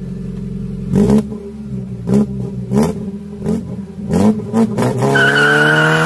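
A car engine revs sharply several times.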